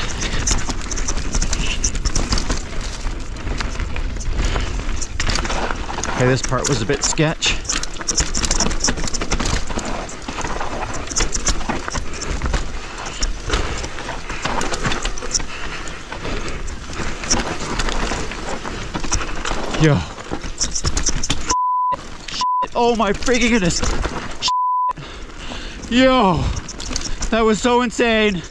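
Bicycle tyres crunch and skid over a dirt trail.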